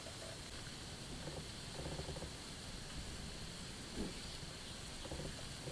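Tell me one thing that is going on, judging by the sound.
Hands rub and scrape a wooden stick.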